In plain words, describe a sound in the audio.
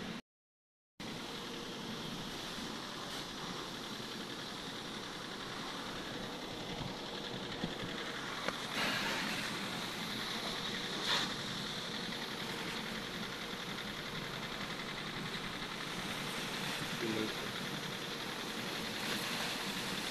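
A hose sprays water onto a car in a steady hiss.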